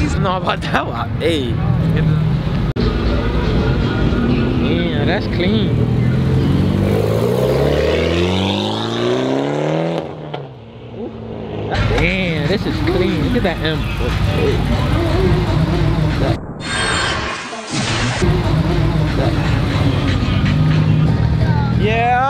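A man talks and laughs excitedly close by.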